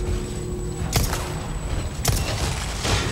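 Gunshots crack sharply in a large echoing hall.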